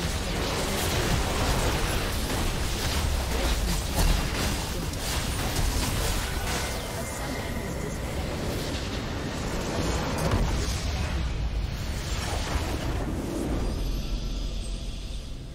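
Video game spells and attacks crackle and boom in a loud battle.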